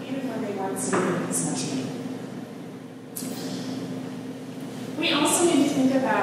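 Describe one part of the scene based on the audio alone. A woman speaks steadily through a microphone in a room with some echo.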